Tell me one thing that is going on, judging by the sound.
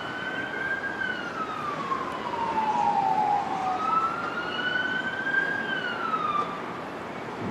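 A fire engine siren wails up and down nearby, then stops.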